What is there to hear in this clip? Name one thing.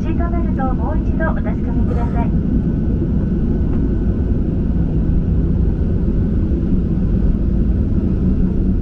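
Aircraft engines drone with a steady low roar.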